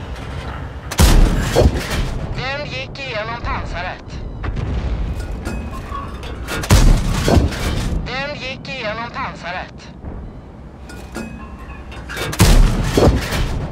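A tank cannon fires with heavy booms.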